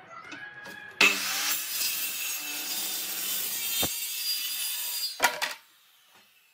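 A circular saw cuts through a wooden board.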